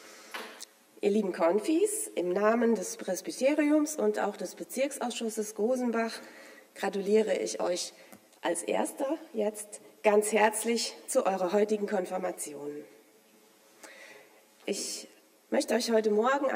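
A middle-aged woman speaks calmly into a microphone in an echoing hall.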